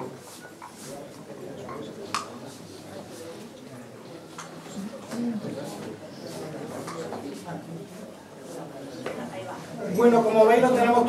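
An audience murmurs and chatters quietly in a hall.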